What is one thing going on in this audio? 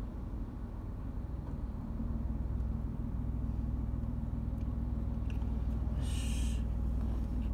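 Car engines rumble and tyres hum on the road as vehicles pass close by.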